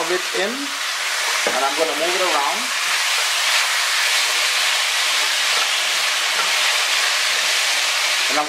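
Meat sizzles loudly in a hot pot.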